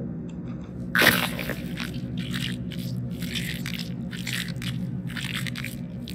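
Wet flesh squelches and tears in repeated bursts.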